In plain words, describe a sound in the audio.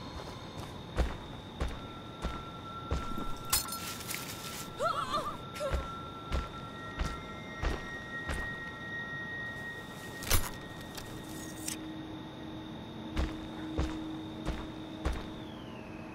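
Heavy footsteps crunch slowly on the ground.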